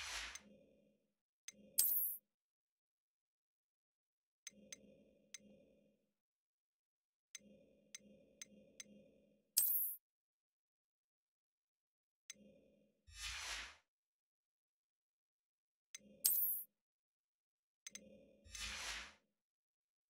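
Short game menu clicks and chimes sound now and then.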